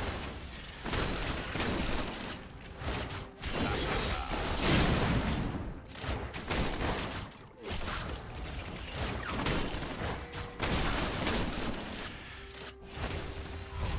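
Magic blasts and hits crackle and thud in a fast fight.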